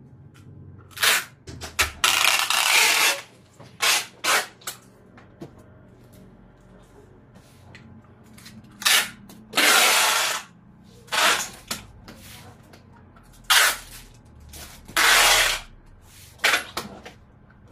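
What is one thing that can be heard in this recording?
Packing tape screeches as it is pulled off a roll in quick bursts.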